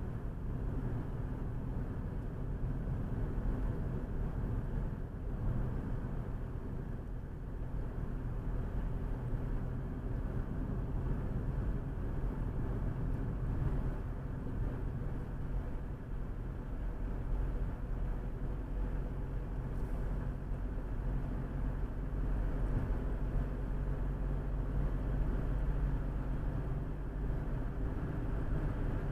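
Tyres roll over a smooth road.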